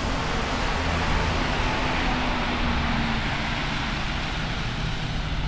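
A bus engine rumbles as a bus drives by.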